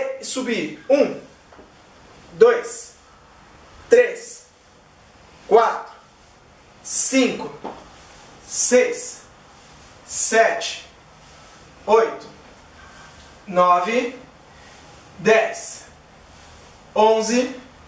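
A man speaks short counts aloud close by, every couple of seconds.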